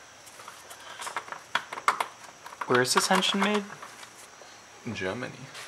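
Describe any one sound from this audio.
Plastic engine parts click and rattle under a hand.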